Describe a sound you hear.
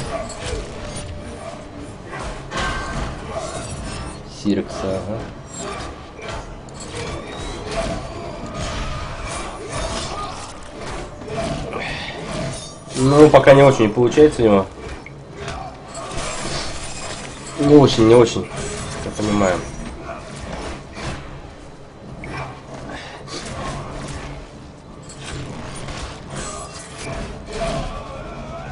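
Punches and kicks thud in a fast video game fight.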